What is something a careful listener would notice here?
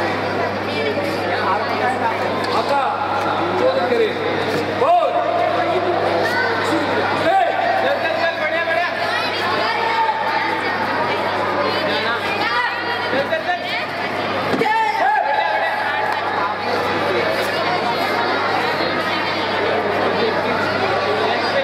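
A crowd of spectators chatters and cheers loudly in an echoing space.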